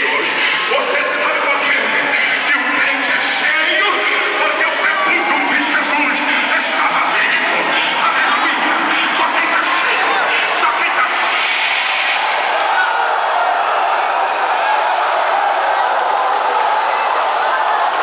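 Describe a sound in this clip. A large crowd of men and women sings and prays aloud together in a big echoing hall.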